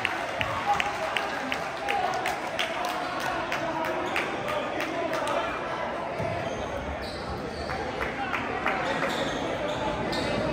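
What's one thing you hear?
A basketball bounces on a hardwood court in a large echoing gym.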